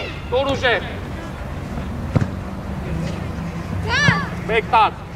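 Young boys shout across an open field.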